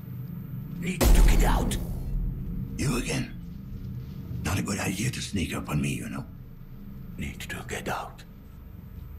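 A man speaks in a low, gruff voice close by.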